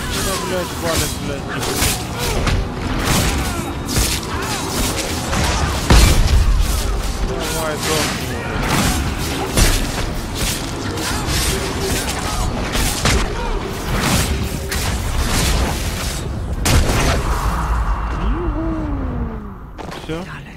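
Fiery blasts boom and crackle in rapid bursts.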